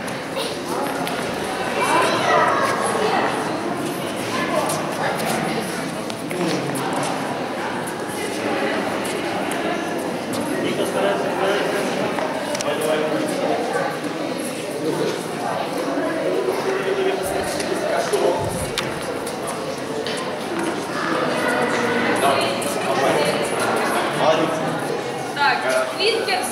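A crowd of adults and children chatters in a large echoing hall.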